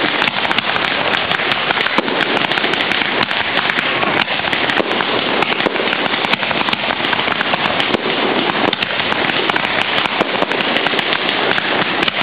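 Fireworks crackle and pop rapidly without pause.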